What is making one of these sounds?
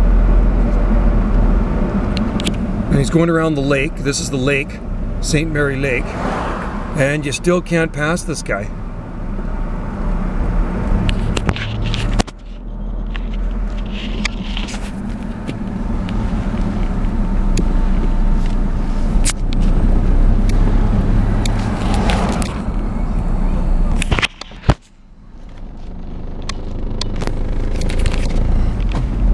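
A car engine hums steadily with tyre noise on the road, heard from inside the car.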